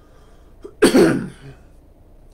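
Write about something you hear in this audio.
A man coughs close by.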